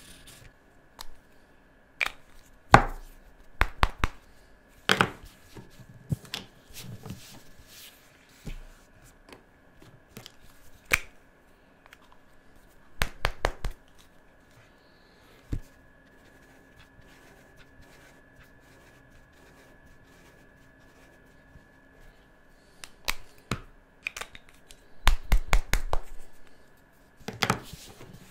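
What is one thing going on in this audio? Markers knock and click against a table.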